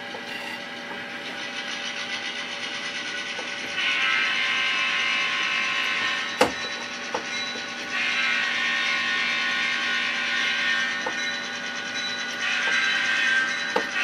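An N-scale model diesel locomotive hums as it rolls along track.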